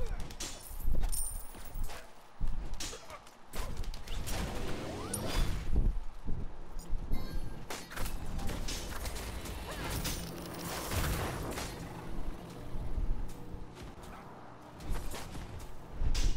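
Swords and weapons clash and strike in rapid hits.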